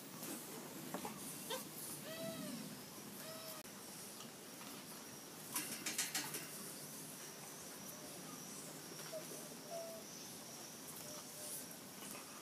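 Puppies whine softly.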